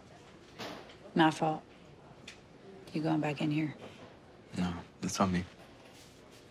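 A woman speaks softly and closely.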